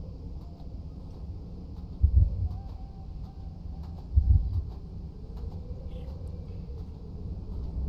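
Wind blows steadily through a snowstorm.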